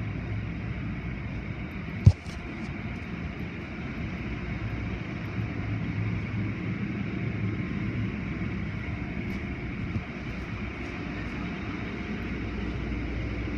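Spinning brushes of a car wash whir and slap against a car.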